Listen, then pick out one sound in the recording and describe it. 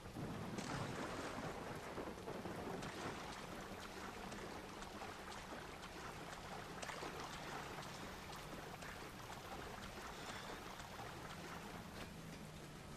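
Water sloshes as someone swims.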